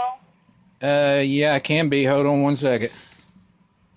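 A man laughs loudly in a high, strained voice.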